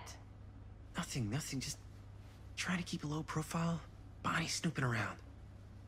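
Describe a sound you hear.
A young man speaks hesitantly and quietly.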